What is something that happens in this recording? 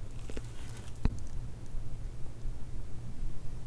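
A spoon scrapes softly through a layered cake.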